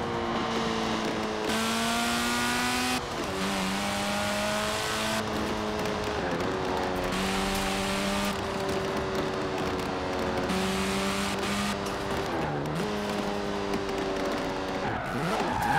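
A car engine revs hard, rising in pitch through each gear and dropping at each gear change.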